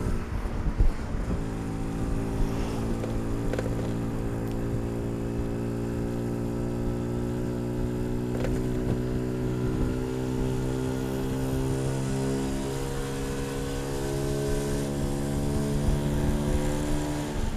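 Wind rumbles against the microphone.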